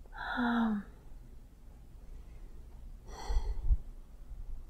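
An elderly woman groans in discomfort close by.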